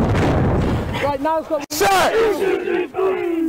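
A man shouts nearby, calling out loudly.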